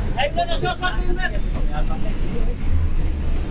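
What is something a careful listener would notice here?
A man speaks loudly and with agitation close by.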